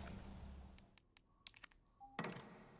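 Short electronic clicks of a game menu sound.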